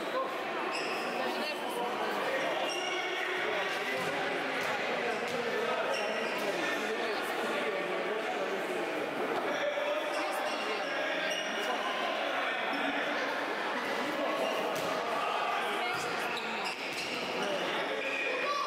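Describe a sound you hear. Children shout and call out in an echoing indoor hall.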